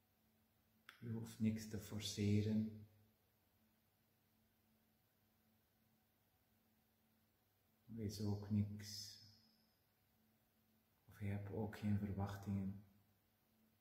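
A man speaks calmly and softly close by.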